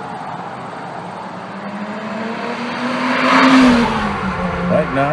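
A sports car engine rises and falls as the car drives past.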